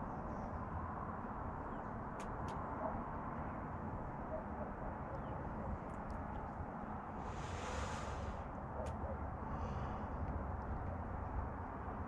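An elderly man talks close to the microphone.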